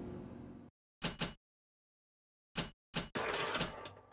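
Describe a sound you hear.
A menu selection clicks.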